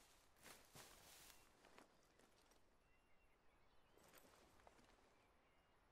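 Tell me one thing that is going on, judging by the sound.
Leaves and branches rustle as someone pushes through bushes.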